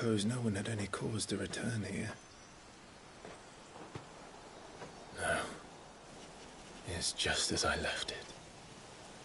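A young man speaks calmly and quietly.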